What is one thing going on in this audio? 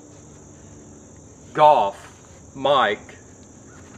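Gloves rustle as a man pulls them on.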